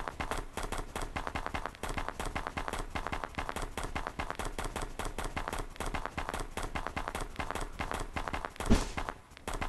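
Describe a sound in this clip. Paws crunch quickly through snow.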